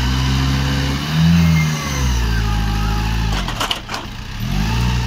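A forklift engine hums and revs as the forklift drives past.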